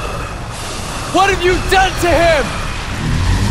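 A young man speaks tensely.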